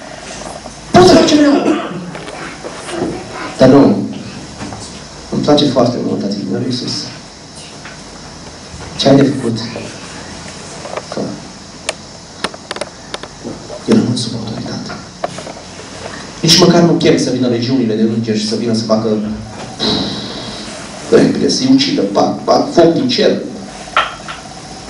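A man speaks with animation through a microphone and loudspeakers, in a reverberant room.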